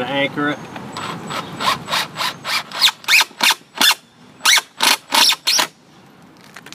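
A power drill whirs in short bursts.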